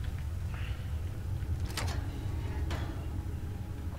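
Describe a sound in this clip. A lock clicks open.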